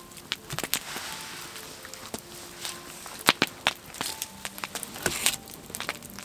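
Flames whoosh as a fire flares up.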